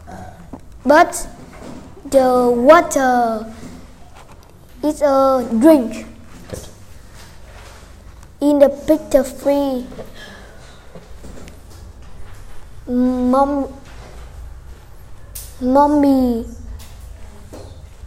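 A young boy answers nearby in short phrases.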